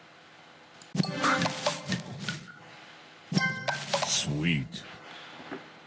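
A match-three puzzle game plays bright chiming sound effects as candies clear.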